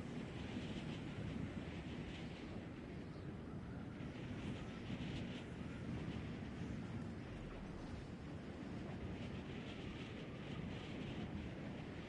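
Wind rushes steadily past during a glide through the air.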